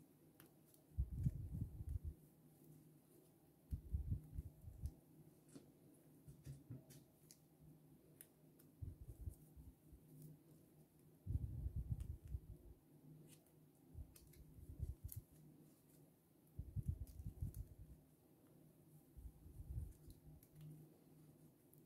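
Yarn rustles softly as it is handled.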